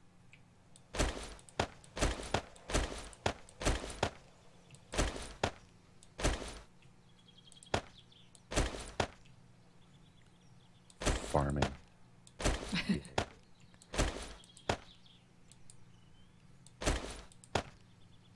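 Game items clatter softly as they are dragged and dropped, again and again.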